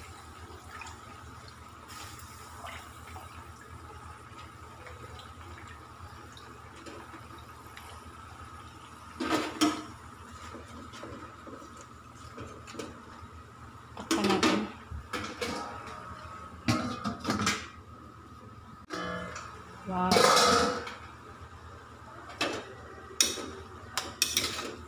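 Greens sizzle and hiss in a hot pan.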